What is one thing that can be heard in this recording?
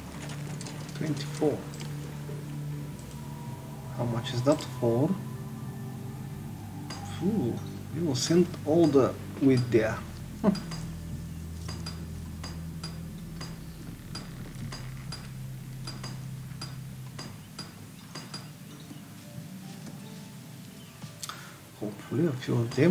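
A man speaks calmly and close to a microphone, in short bursts.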